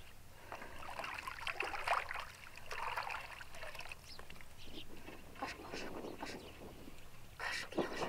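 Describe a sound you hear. Hands swish leaves in a basin of water.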